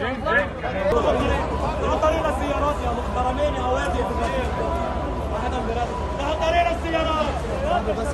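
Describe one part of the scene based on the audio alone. A siren wails nearby.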